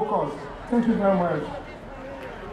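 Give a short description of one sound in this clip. A man speaks into a microphone over loudspeakers outdoors.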